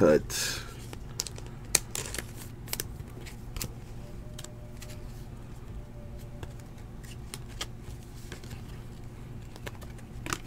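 Trading cards shuffle and click against each other.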